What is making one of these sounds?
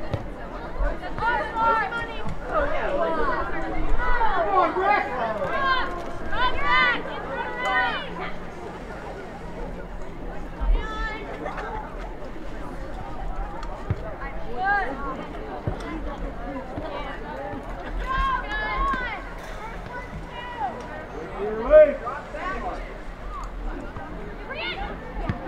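Young women on a field shout and call out to each other outdoors.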